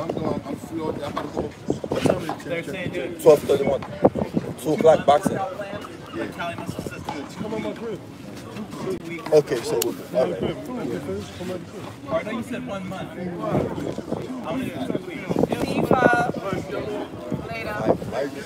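A man with a deep voice talks nearby.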